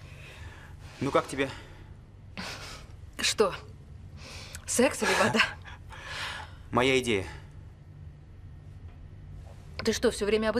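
A young man speaks in a calm voice nearby.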